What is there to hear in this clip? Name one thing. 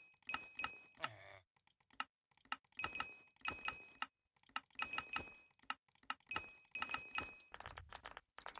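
A short bright chime rings with each quick purchase click.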